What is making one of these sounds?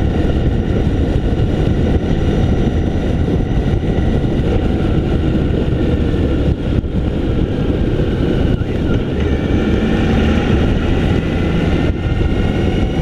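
Wind roars loudly over the microphone of a moving vehicle.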